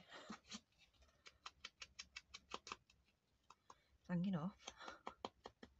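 Paper rustles and scrapes softly as hands handle it.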